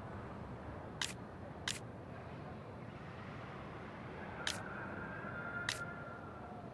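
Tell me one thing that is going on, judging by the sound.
Short, sharp menu clicks sound a few times.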